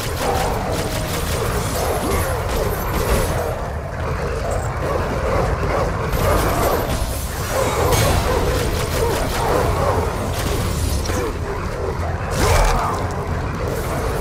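Creatures snarl and growl.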